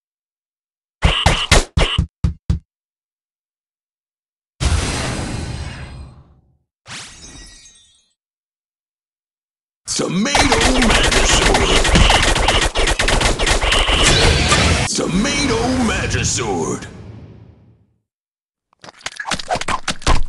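Cartoon fight sound effects crash and whoosh in quick bursts.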